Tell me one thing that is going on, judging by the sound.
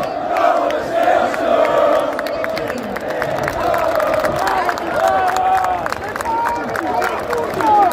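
A large crowd sings and chants loudly outdoors.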